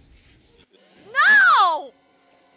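A young woman screams loudly into a close microphone.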